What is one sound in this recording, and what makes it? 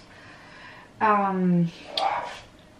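A young woman lets out a long, drawn-out vocal sound.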